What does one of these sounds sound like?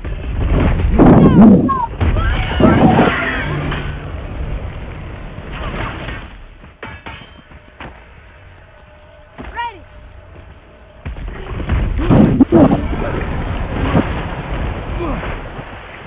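Fire bursts out with a loud roaring whoosh.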